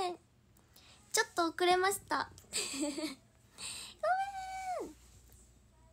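A young woman talks close to a microphone with animation.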